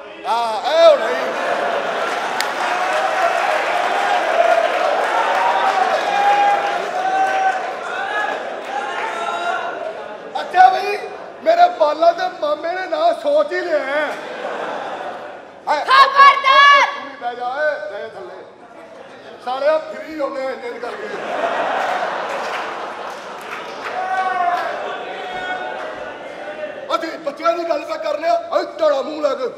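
A man speaks loudly and with animation through a stage microphone.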